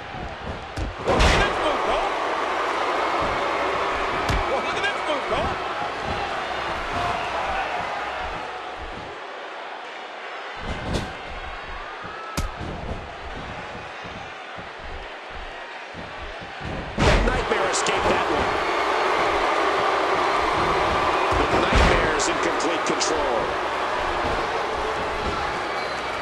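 A large crowd cheers loudly in an echoing arena.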